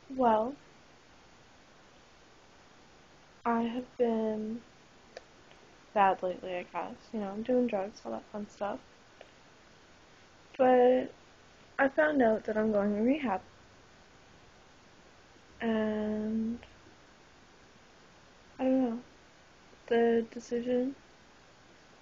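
A young woman talks close to a microphone in short bursts with pauses.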